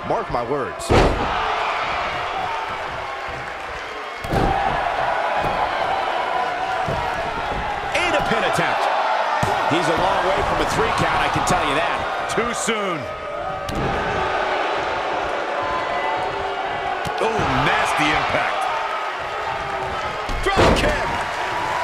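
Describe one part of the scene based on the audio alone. Bodies slam onto a mat with heavy thuds.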